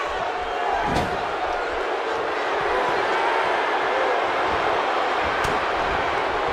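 Bodies thud hard against each other.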